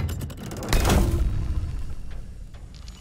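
A heavy door bangs and scrapes open.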